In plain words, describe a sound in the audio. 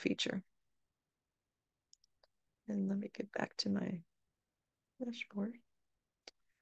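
An elderly woman speaks calmly and close to a microphone, in short phrases.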